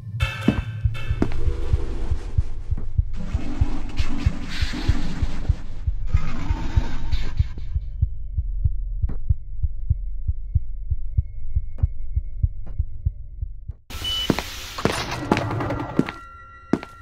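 Footsteps thud at a steady pace on a hard floor.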